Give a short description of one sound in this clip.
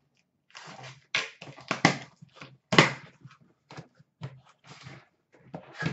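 Cardboard flaps rustle as a box is opened.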